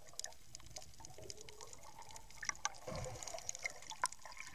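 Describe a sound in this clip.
Air bubbles gurgle and rumble close by underwater.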